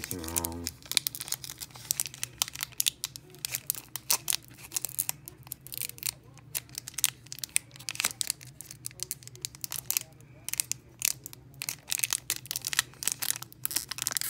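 A foil wrapper is torn open by hand.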